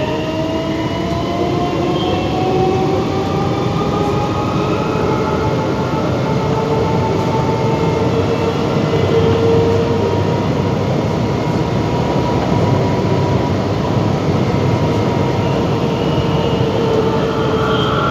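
Train wheels squeal with a high, wavering whine.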